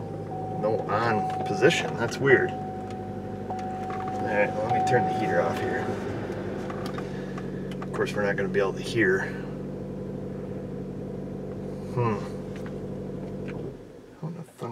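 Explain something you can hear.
A car engine idles with a steady hum, then shuts off.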